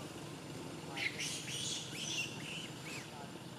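A young monkey squeals shrilly close by.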